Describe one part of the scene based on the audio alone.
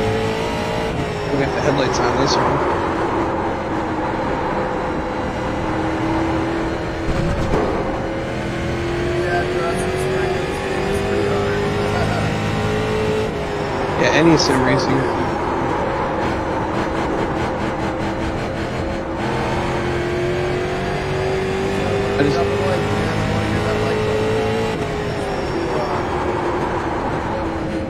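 A race car engine roars steadily, its pitch rising and falling through the turns.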